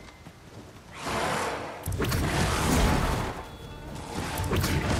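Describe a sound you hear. A large bird flaps its wings loudly overhead.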